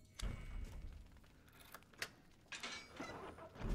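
A metal latch rattles against a wooden door.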